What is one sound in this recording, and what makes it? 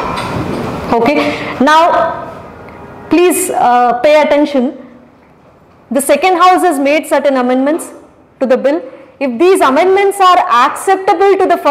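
A young woman lectures with animation into a close microphone.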